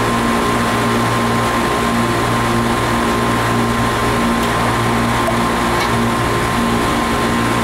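Air conditioning units hum steadily outdoors.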